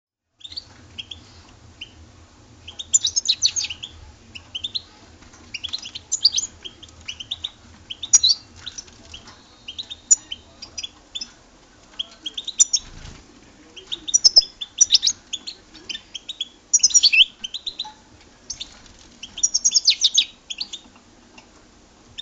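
A young goldfinch sings bursts of twittering song.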